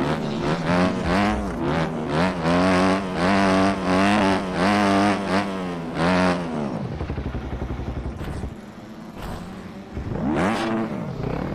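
A dirt bike engine revs up and down loudly.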